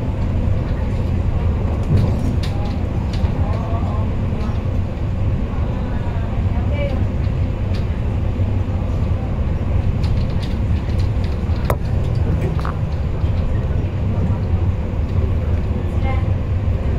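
A train rumbles steadily along the rails with a low roar.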